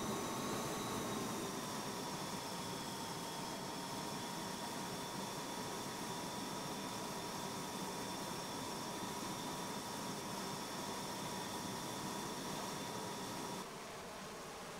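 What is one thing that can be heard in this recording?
A jet engine whines steadily.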